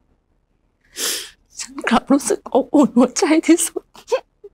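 A woman sobs and cries close by.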